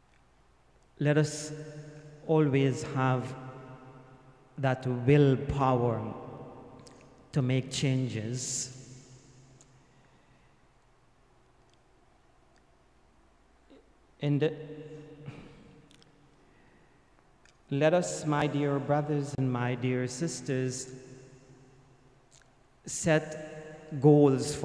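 An elderly man speaks slowly and earnestly into a microphone, his voice echoing in a reverberant room, with long pauses.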